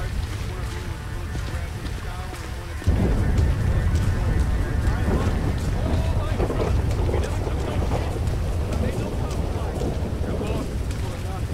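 Footsteps crunch slowly over dry ground.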